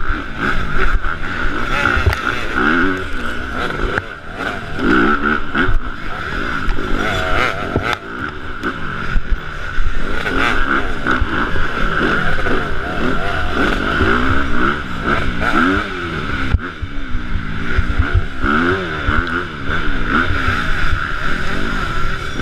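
A dirt bike engine roars up close, revving up and down.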